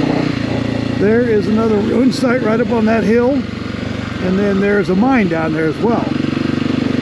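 A man talks with animation close to a helmet microphone.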